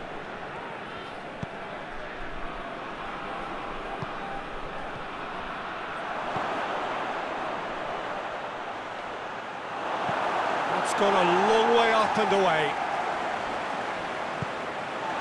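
A stadium crowd roars and murmurs steadily, swelling loudly for a moment.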